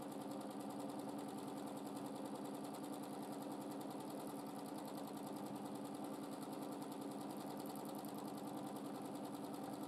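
A sewing machine hums and stitches rapidly and steadily.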